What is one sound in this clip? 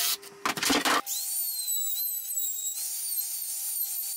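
An electric router whines at a high, steady pitch.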